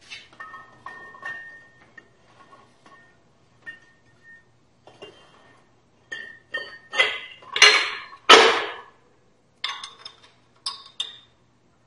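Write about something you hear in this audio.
A metal wheel clicks and clatters as it is turned by hand.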